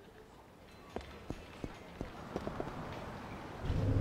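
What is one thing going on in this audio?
Footsteps tap on a hard pavement.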